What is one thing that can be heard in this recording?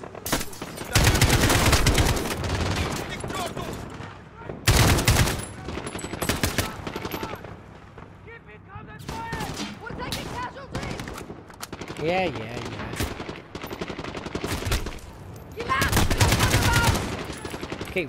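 A rifle fires loud rapid bursts of shots.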